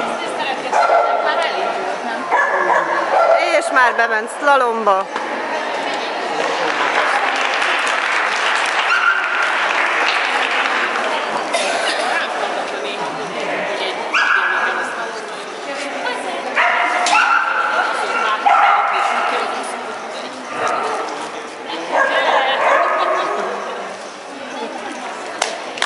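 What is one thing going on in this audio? A woman calls out loud commands in a large echoing hall.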